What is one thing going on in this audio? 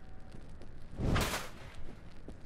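A club hits a body with a heavy, wet thud.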